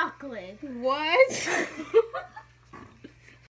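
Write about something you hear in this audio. A young girl laughs loudly.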